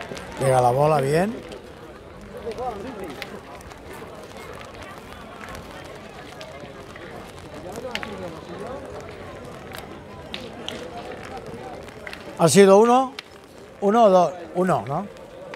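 Men talk loudly and animatedly close by, outdoors.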